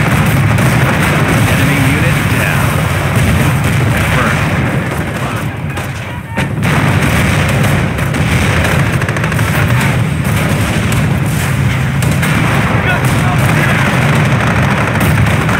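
A flamethrower roars as it shoots fire.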